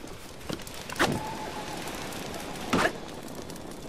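A spear strikes a wooden log with a dull thud.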